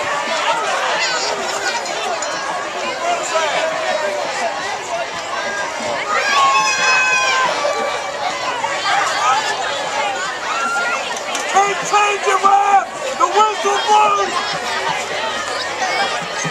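Young men on the sideline shout and cheer loudly.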